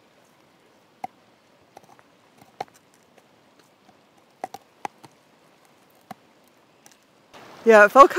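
A dog gnaws and scrapes its teeth on a wooden stick.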